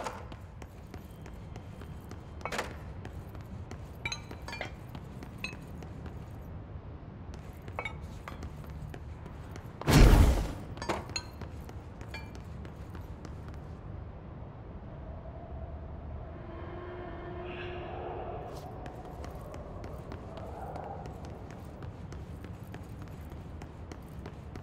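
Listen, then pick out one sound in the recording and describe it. Footsteps run across a hard floor.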